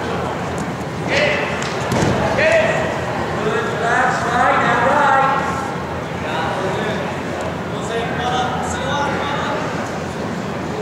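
Spectators shout encouragement in a large echoing gym.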